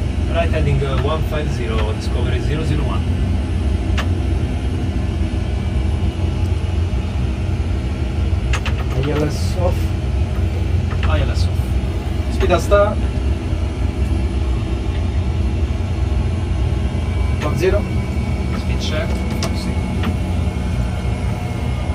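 A steady low jet engine drone hums throughout.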